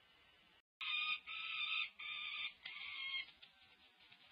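A young falcon screams loudly in short bursts.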